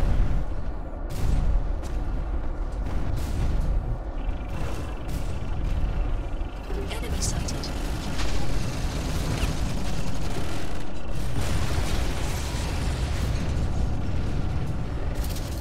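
A heavy machine rumbles and clanks steadily.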